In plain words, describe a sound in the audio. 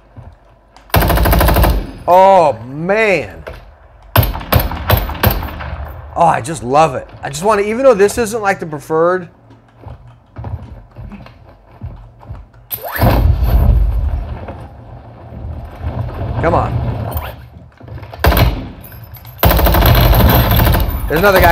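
Gunfire from a video game bursts loudly.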